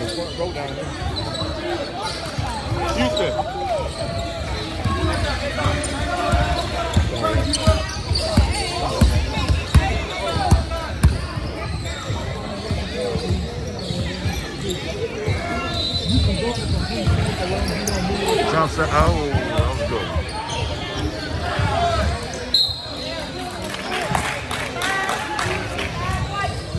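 A basketball bounces with hollow thumps on a wooden floor in a large echoing hall.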